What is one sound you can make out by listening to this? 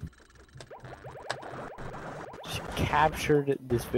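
Magical sparkling sound effects burst as a character attacks.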